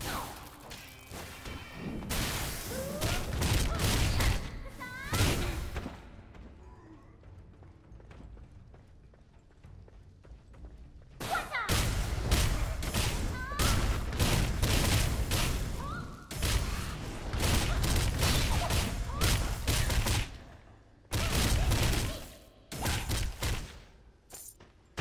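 Swords clash and spells burst loudly in a fight.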